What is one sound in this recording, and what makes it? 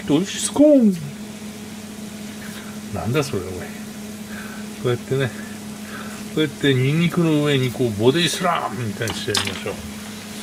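Chopsticks click and scrape against a pan.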